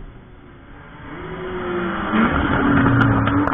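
Car engines rev loudly as cars approach on the track.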